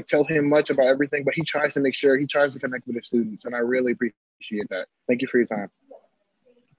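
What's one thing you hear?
A man speaks through an online call.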